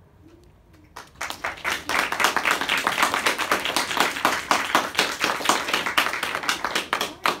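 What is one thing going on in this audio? A small group applauds with claps close by.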